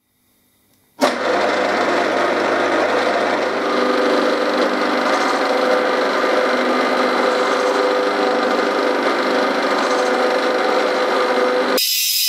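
A milling cutter grinds steadily into metal with a loud, even whir.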